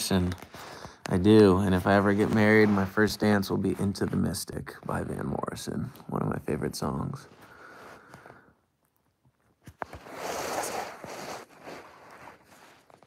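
A young man talks softly and close by.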